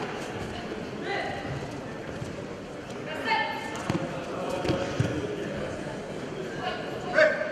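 Spectators shout and cheer now and then.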